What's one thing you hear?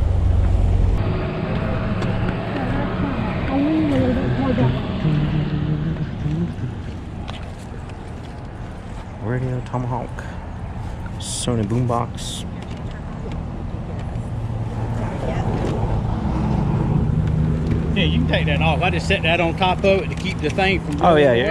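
A man talks close by, casually.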